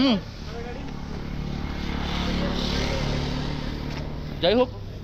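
A motorcycle rides past on the road.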